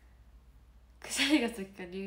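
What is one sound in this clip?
A young woman laughs lightly.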